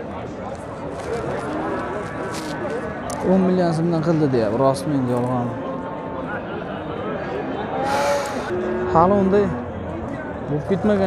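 A crowd of men talks loudly all around outdoors.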